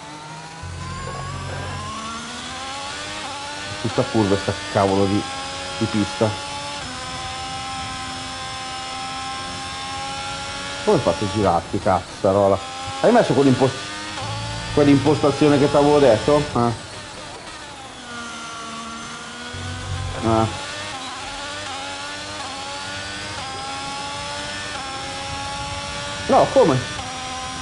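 A racing car engine whines at high revs, rising and falling as the gears change.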